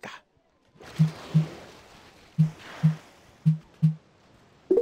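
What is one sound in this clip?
Short soft blips sound in pairs as a menu selection moves.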